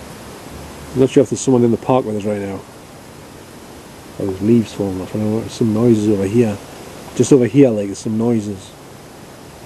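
A man speaks calmly close by, in short bursts with pauses.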